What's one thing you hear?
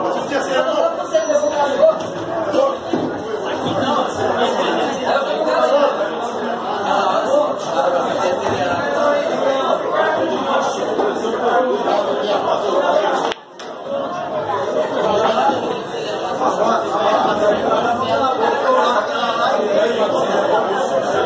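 A crowd of men talks loudly and chatters nearby.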